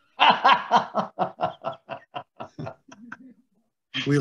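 An older man laughs over an online call.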